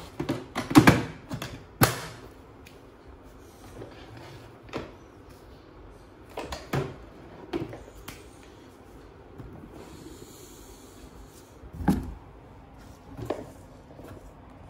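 Hard plastic knocks and clatters as a vacuum cleaner is moved and handled.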